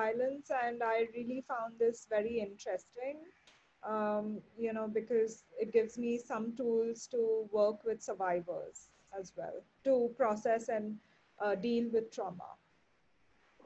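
A woman speaks steadily over an online call.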